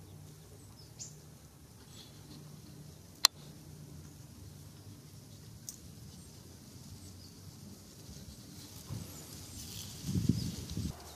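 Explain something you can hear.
A small bird hops and pecks softly on a dirt path.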